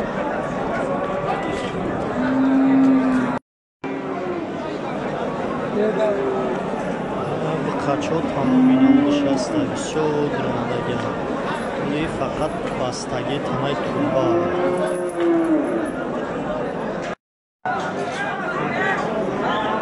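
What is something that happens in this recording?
A crowd of men talks loudly all around outdoors.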